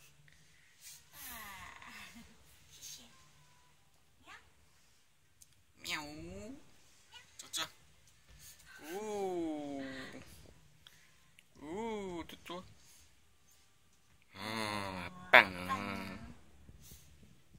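A young woman talks playfully and with animation, close by.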